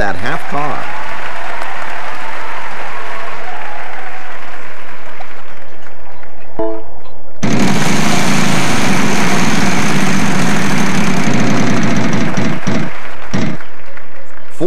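A prize wheel clicks rapidly as it spins.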